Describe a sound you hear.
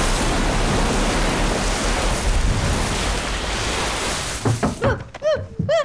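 Water rushes and crashes loudly.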